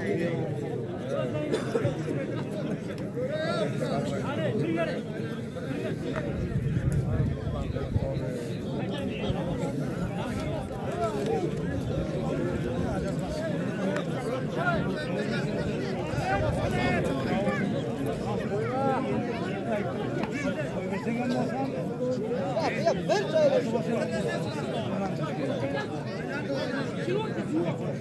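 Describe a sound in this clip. A large outdoor crowd of men chatters and calls out throughout.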